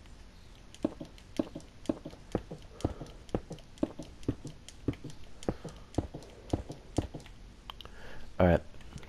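Footsteps tap steadily on stone.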